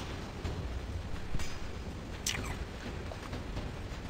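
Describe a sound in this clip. Someone crunches while eating a snack.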